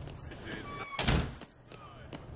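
A door bangs open.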